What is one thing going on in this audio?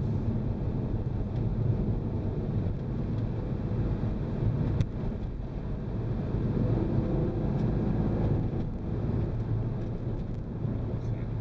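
Tyres roll on asphalt with a low rumble.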